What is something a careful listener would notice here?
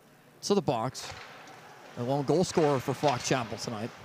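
Hockey sticks clack together on the ice.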